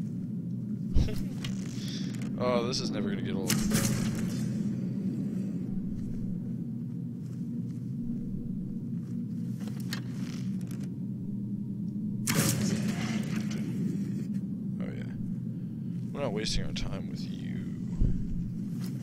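A bowstring snaps as arrows are shot, several times.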